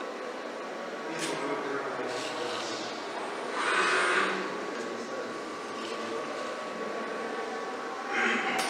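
Robotic machinery whirs and hums steadily.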